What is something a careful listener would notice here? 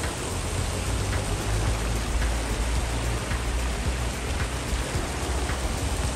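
Water rushes and churns through a channel.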